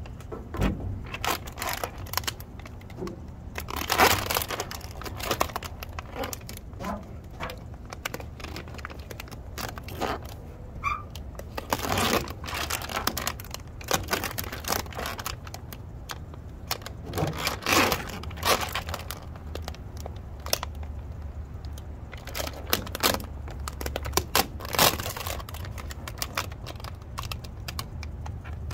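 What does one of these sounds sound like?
Plastic backing film crinkles and rustles as hands peel it away.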